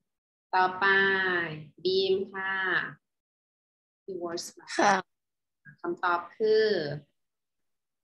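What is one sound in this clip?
A young woman speaks clearly over an online call.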